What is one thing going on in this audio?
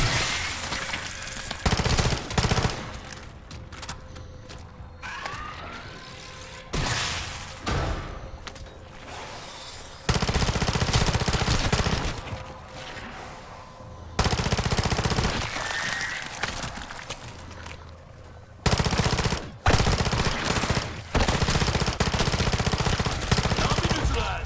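Rapid gunfire bursts loudly in repeated volleys.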